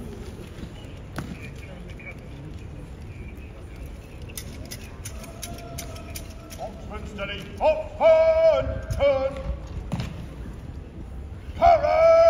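Horses' hooves clop slowly on paving stones.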